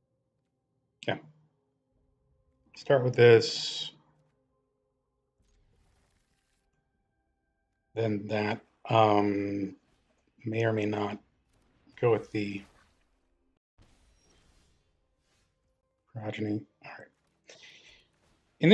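A man talks calmly and close to a microphone, in short bursts.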